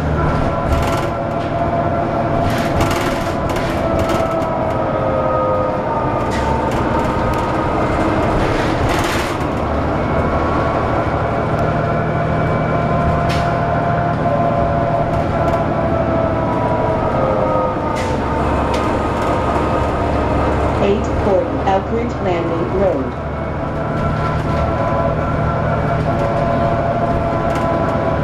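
A bus engine hums and whines steadily while driving.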